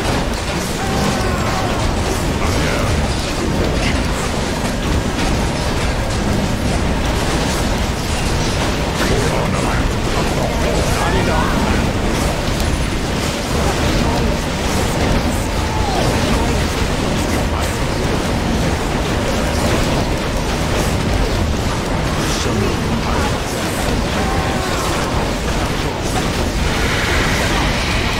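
Weapons clash and magic spells burst in a busy, noisy battle.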